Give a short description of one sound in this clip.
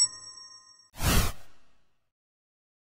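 A game whoosh sweeps past.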